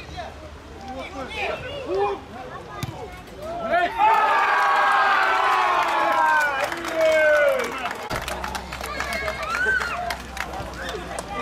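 Footballers shout to each other across an open field.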